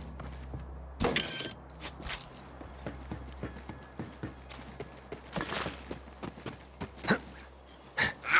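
Footsteps thud quickly on wooden boards and ground.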